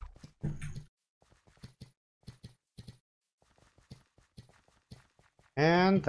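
Sword hits land with short, quick thuds in a video game.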